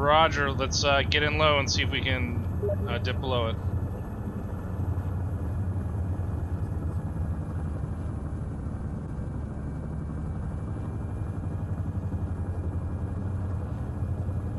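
A helicopter's engine and rotors drone steadily.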